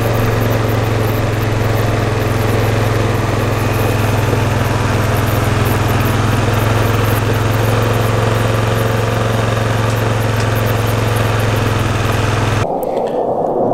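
An engine hums steadily as a small off-road vehicle drives along.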